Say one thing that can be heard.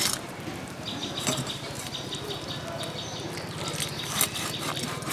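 Hands squelch and tear wet fish flesh.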